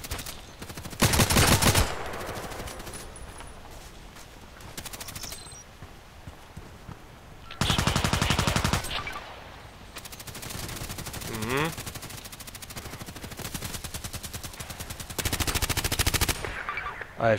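An automatic rifle fires.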